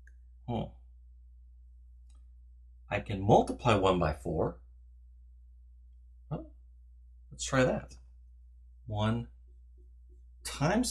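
A man speaks calmly into a nearby microphone, in short phrases with pauses.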